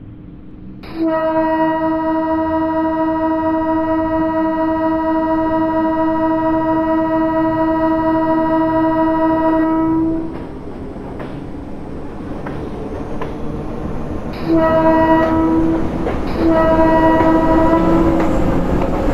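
A train horn blows long and loud, then sounds again in two shorter blasts.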